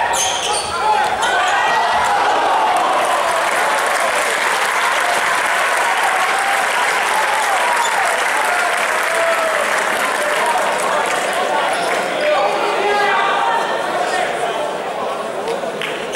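A crowd cheers and shouts loudly in a large echoing hall.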